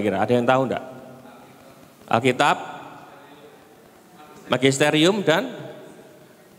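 A man speaks with animation through a microphone in short bursts, echoing in a large room.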